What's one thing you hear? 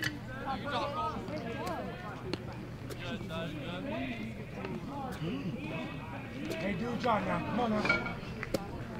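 Young men talk and call out nearby, outdoors in the open.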